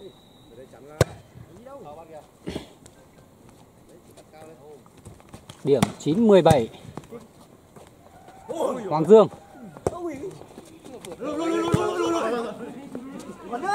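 A volleyball is struck with hands with sharp smacks.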